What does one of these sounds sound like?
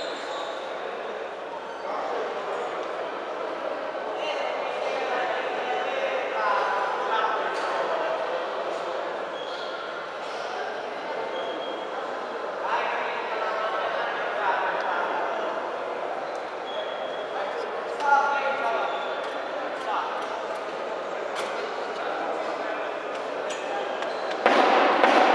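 Men talk nearby in the crowd, calling out now and then.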